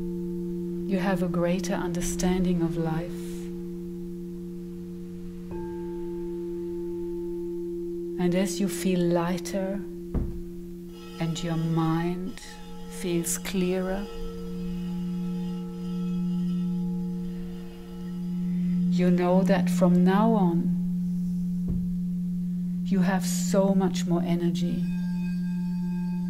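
Crystal singing bowls hum in a steady, ringing drone.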